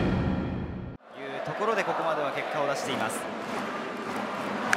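A stadium crowd murmurs and cheers in a large open space.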